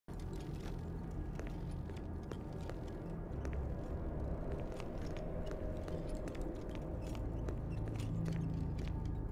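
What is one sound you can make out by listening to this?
Footsteps tap on a hard floor at a steady walking pace.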